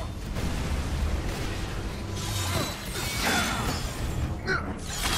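Weapons clash and thud in a fast fight.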